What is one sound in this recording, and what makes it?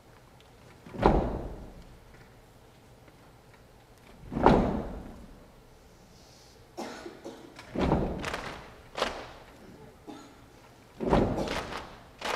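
A choir of young women sings short, loud chords that ring out in a large echoing hall.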